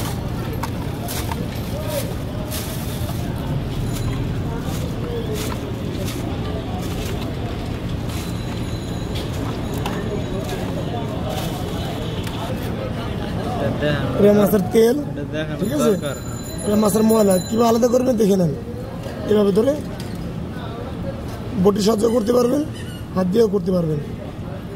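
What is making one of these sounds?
Wet fish flesh squelches as it is pulled apart by hand.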